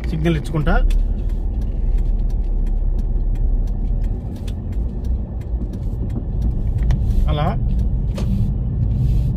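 A car engine hums low and steady from inside the car as it drives.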